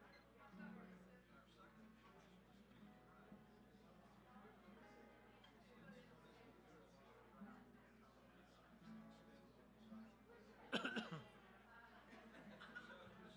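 An acoustic guitar is strummed softly.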